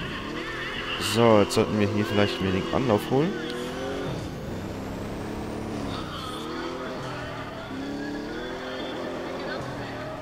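A sports car engine revs hard.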